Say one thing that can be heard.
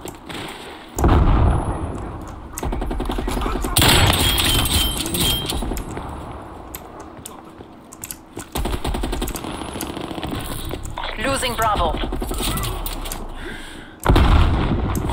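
A sniper rifle fires with loud booms.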